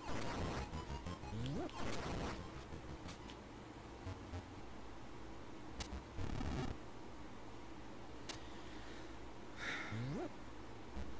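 Retro video game music plays steadily.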